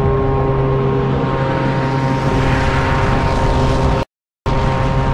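A sandstorm roars and swells louder.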